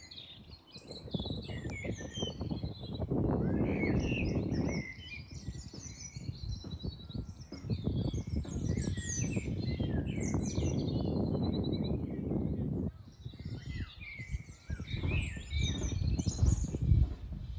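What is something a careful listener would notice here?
Wind gusts outdoors, rumbling against the microphone.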